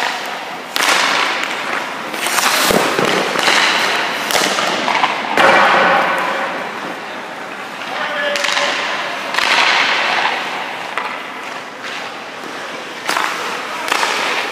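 Ice skates scrape sharply across the ice.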